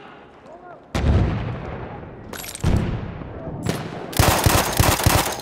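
A machine gun fires loud, rapid bursts close by.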